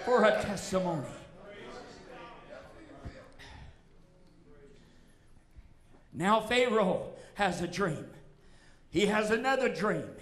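An older man preaches forcefully into a microphone in an echoing hall.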